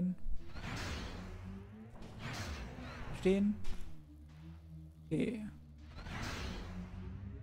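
A spaceship engine hums and whooshes in repeated swells.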